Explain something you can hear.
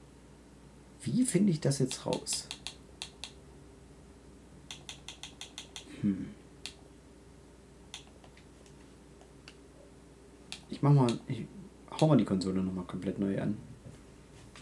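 A young man speaks casually into a close microphone, in short bursts.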